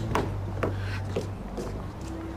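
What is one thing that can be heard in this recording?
Footsteps click on pavement.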